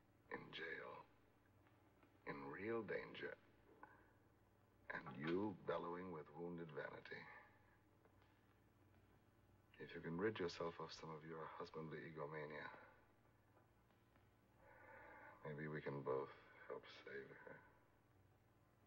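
A man speaks weakly and haltingly, close by.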